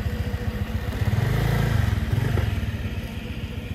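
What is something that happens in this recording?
A motorcycle engine revs briefly.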